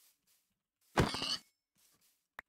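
A pig squeals when struck.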